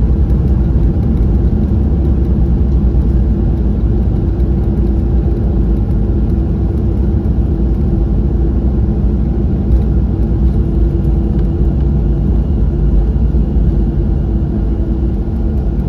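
An airliner's wheels rumble over the runway.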